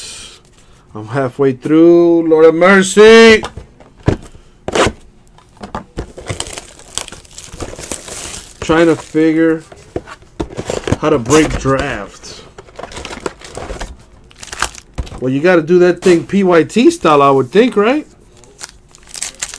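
Card packs and foil wrappers rustle and crinkle in hands.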